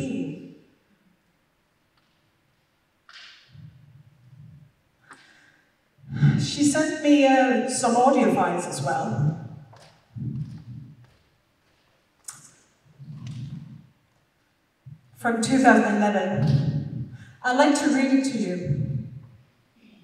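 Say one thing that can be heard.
A woman speaks calmly through a microphone, in pauses, in a large hall.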